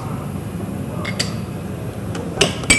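An air hockey puck clacks against mallets and rails.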